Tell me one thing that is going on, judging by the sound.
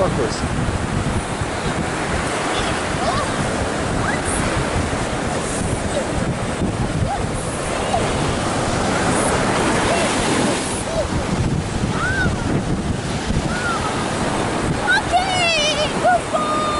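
Waves wash onto the shore nearby.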